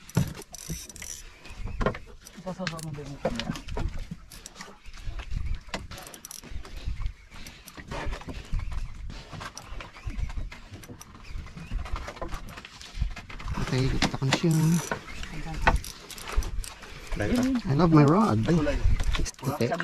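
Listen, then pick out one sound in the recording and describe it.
A fishing reel clicks and whirs as a line is wound in.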